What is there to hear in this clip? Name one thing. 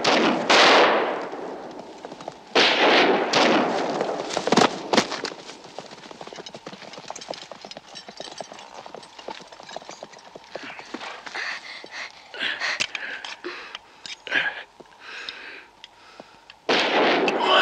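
Horses gallop with hooves pounding on dry ground.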